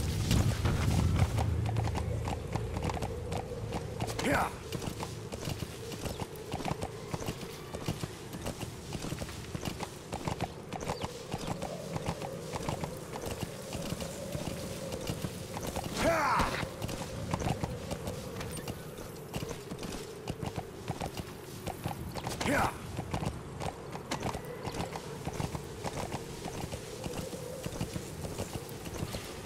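A horse gallops with quick, steady hoofbeats on dry ground.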